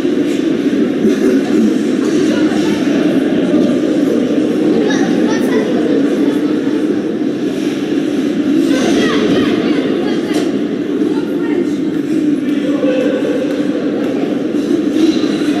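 A crowd of spectators murmurs and chatters in a large echoing arena.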